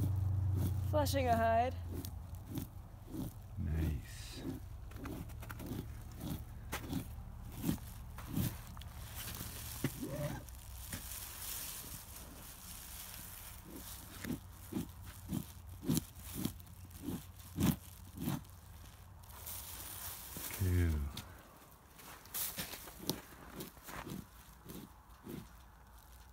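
A blade scrapes rhythmically across a hide in short, repeated strokes.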